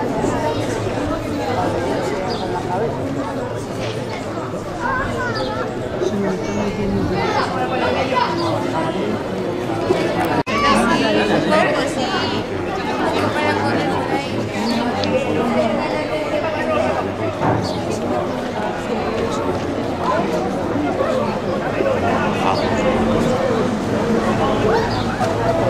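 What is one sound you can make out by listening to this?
A crowd of men and women shouts and chatters outdoors.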